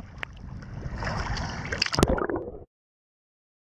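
Small waves splash and lap at the water's surface.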